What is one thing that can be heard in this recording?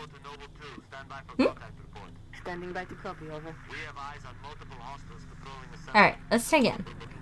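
A young woman talks with animation into a close microphone, ending in high squeals.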